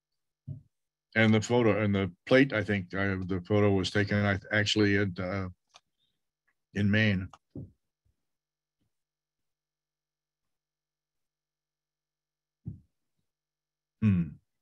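An elderly man speaks calmly over an online call, with pauses.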